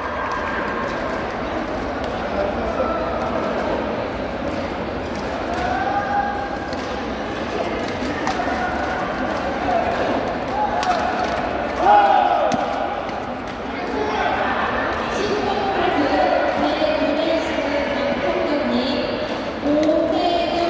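Shuttlecocks are struck with sharp taps by rackets.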